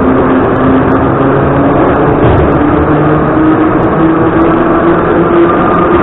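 A subway train rumbles and roars loudly along the tracks, with a steady low drone and whine.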